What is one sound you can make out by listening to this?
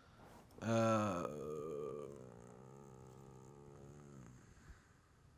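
A second young man speaks calmly into a nearby microphone.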